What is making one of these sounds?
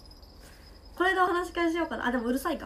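A young woman speaks brightly and playfully, close by.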